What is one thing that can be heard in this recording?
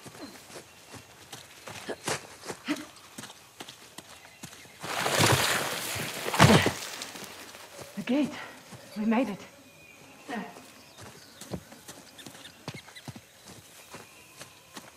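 Footsteps run quickly over leaves and undergrowth.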